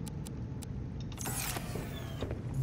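A game menu closes with a soft electronic whoosh.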